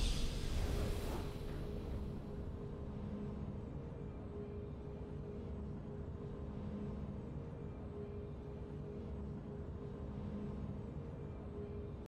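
A soft, triumphant musical tone plays steadily.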